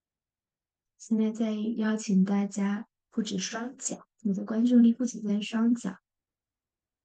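A young woman speaks calmly and softly, close to a microphone.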